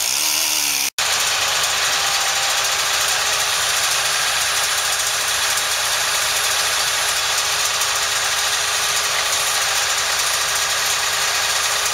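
A truck engine runs steadily nearby.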